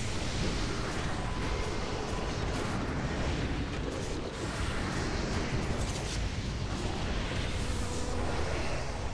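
Spell effects crackle and whoosh in a busy game battle.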